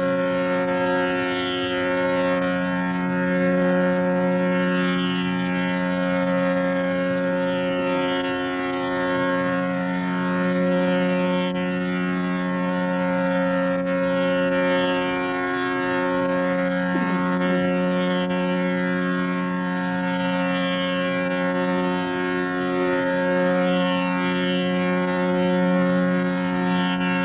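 An elderly man sings a slow, held melody into a microphone.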